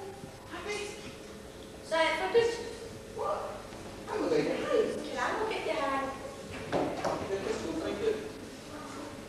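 A young man speaks his lines on a stage, heard from a distance.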